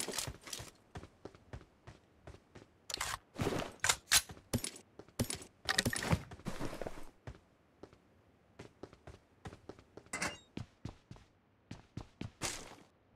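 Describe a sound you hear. Footsteps run quickly across a hard surface.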